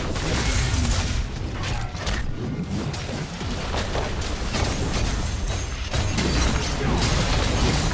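Game combat effects clash and burst in quick succession.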